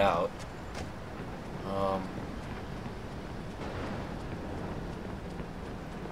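Footsteps hurry over pavement.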